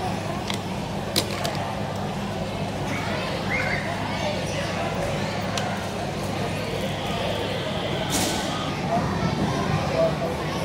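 Many children and adults chatter and shout in a large echoing hall.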